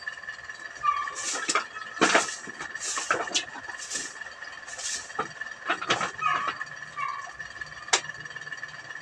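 A broom sweeps and brushes over straw and embers.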